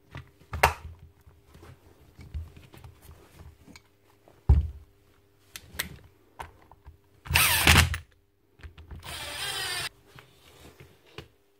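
A power tool clicks and knocks as it is handled on a hard floor.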